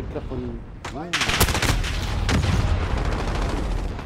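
Rapid gunfire bursts close by.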